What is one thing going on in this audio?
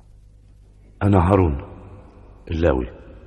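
An elderly man speaks in a raised voice.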